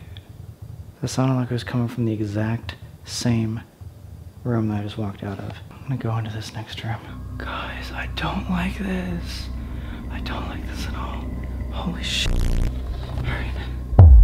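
A young man talks quietly and close by.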